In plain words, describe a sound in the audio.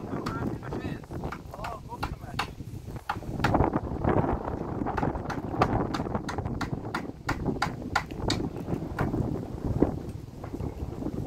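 Hammer blows knock sharply on wood, again and again.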